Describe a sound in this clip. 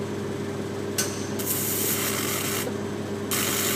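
A welding arc crackles and hisses.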